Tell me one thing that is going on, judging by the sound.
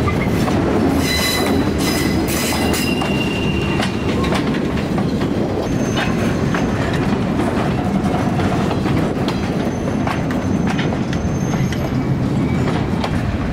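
Train wheels squeal and screech on the rails.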